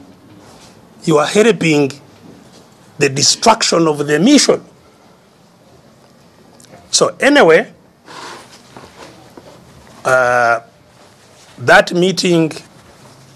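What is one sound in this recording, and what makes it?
An elderly man speaks with emphasis in short bursts, with pauses between them.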